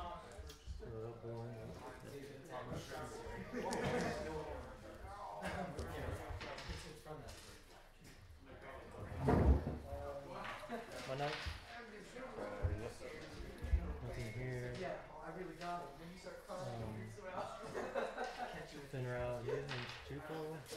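Two men talk casually at close range.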